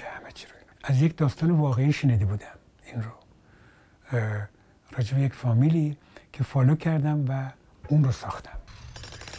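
An elderly man speaks calmly and close up.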